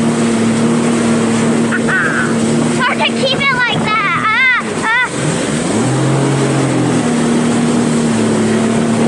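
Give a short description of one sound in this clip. A boat engine drones steadily at speed.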